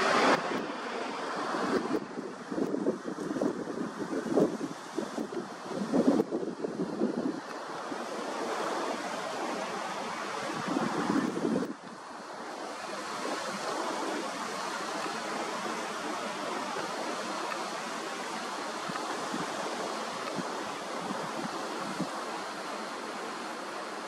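Wind blows steadily outdoors and rustles the leaves.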